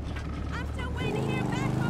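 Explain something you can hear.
A motorcycle engine starts and idles close by.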